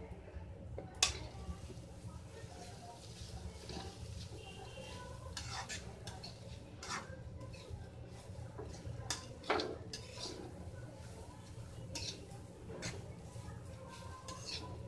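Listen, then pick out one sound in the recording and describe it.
A metal spatula scrapes and clinks against a metal pan.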